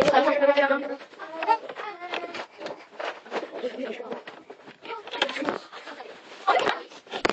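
Children talk and shout.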